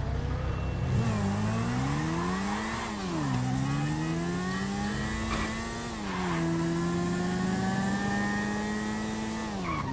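A motorcycle engine revs up and down as it speeds along.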